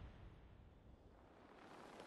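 A horse's hooves clop on a stone path.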